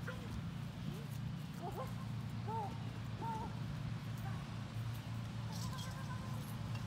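A man calls out short, high commands to a dog outdoors.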